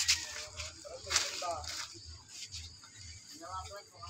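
Wet fish meat flops down onto a plastic sack.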